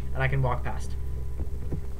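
A young man speaks briefly into a microphone, close by.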